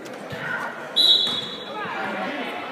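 A referee blows a short whistle blast.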